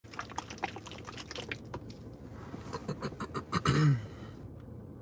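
Pills rattle in a plastic bottle as a man shakes it close by.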